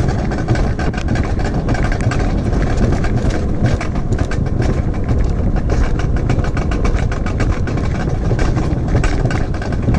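Wind roars past, buffeting loudly.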